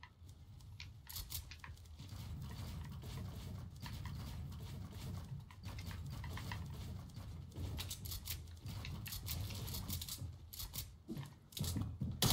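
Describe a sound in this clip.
Video game building pieces snap into place with quick clicks.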